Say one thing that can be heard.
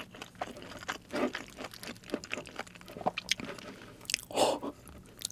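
A young woman chews and smacks her lips up close.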